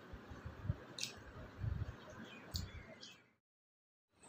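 A man crunches on food while eating.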